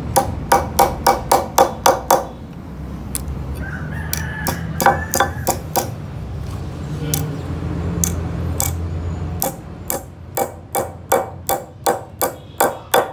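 A heavy metal hammer taps quickly and repeatedly on a metal strip on wood.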